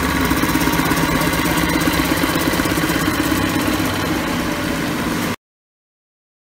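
A sewing machine stitches rapidly with a steady, fast mechanical rattle.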